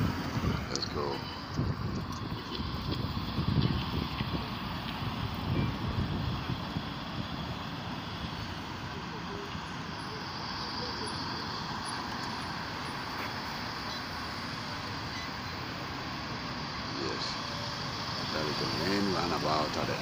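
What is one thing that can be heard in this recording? Cars drive past on a road outdoors.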